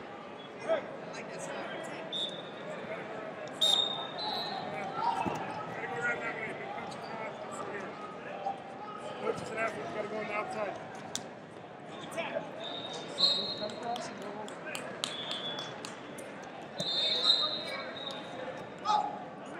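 Voices chatter and shout across a large echoing hall.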